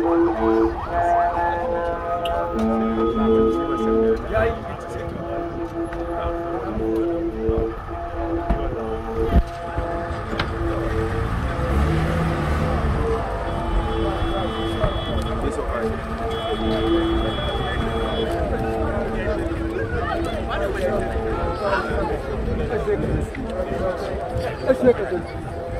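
A crowd of men cheers and chants outdoors.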